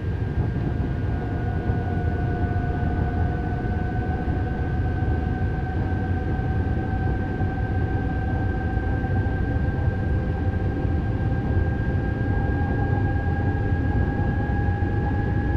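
An electric motor whines, slowly rising in pitch as the train speeds up.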